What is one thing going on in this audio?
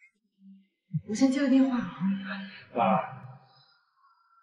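A young woman speaks sharply close by.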